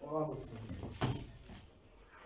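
A kick thuds against a padded shield.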